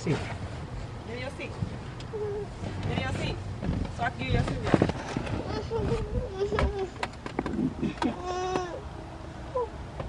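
A young woman talks warmly to a small child nearby.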